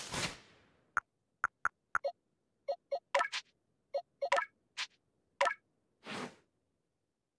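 Short electronic menu blips sound one after another.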